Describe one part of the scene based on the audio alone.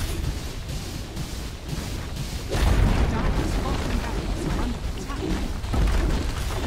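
Game spell effects crackle and boom in a fight.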